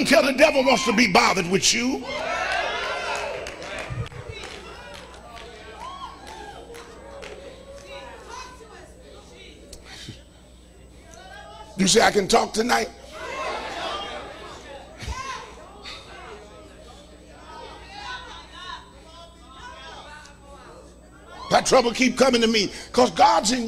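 An elderly man preaches with animation through a microphone in an echoing hall.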